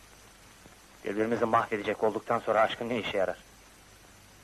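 A man speaks softly and quietly up close.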